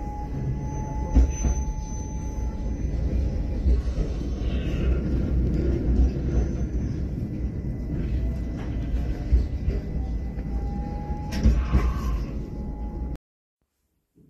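Wind buffets and rumbles loudly outdoors.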